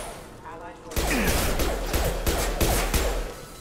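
Gunfire bursts in rapid, sharp shots.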